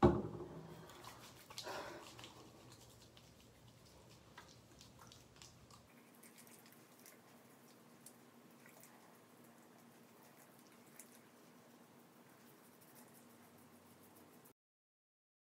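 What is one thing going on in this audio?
Hands rub lotion on a face.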